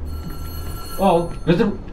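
A young man exclaims loudly.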